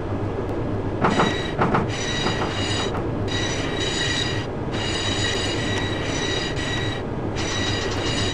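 A train's motor whines with a steady high tone.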